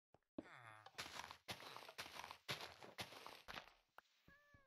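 Blocks crunch and break in quick succession.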